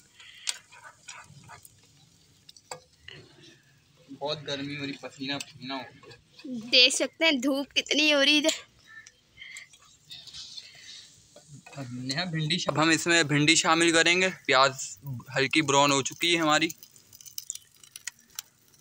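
A spoon scrapes against a metal pan.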